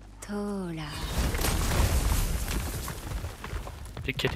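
Heavy rocks crumble and crash down with a rumble.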